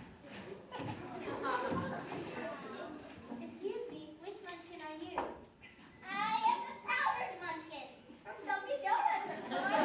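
Children speak lines in a large echoing hall.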